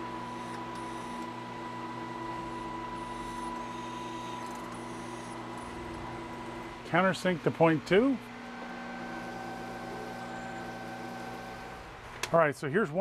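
A milling machine spindle hums steadily.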